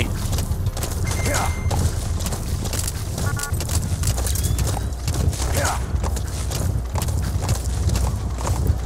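Horse hooves gallop over dirt.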